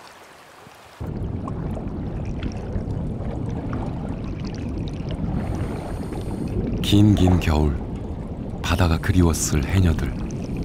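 Water rumbles and gurgles underwater.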